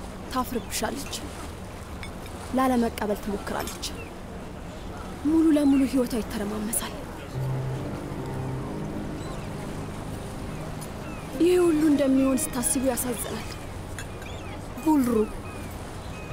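A young woman speaks quietly and with distress, close by.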